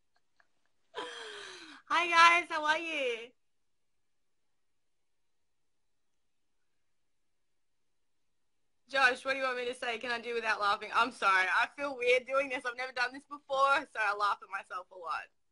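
A young woman talks with animation close to a phone microphone.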